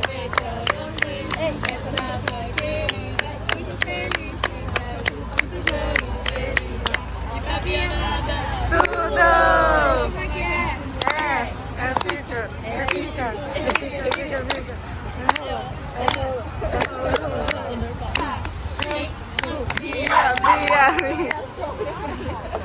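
A group of people sings together outdoors.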